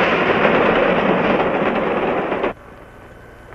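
A steam train rumbles along the tracks.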